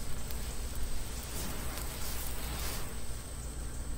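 A spray hisses in short bursts.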